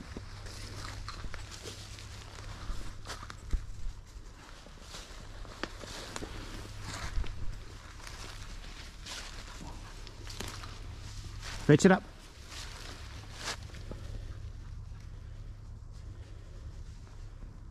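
Footsteps crunch through dry fallen leaves.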